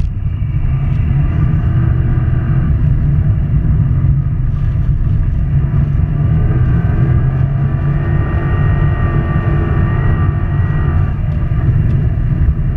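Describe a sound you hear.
A turbocharged flat-four engine of a car roars at full throttle, heard from inside the car.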